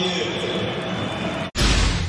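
A young man shouts with excitement.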